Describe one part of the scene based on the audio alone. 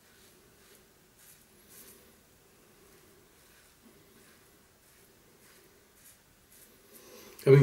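A razor scrapes softly through stubble in short strokes.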